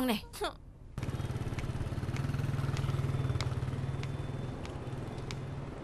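A motorbike engine hums as it passes.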